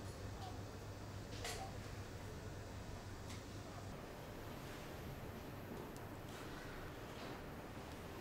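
A woman speaks quietly nearby.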